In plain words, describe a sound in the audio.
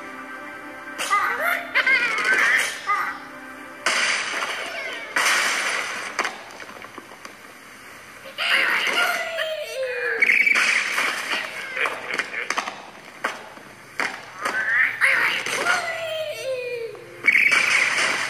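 Cartoon birds squawk and chirp from a small tablet speaker.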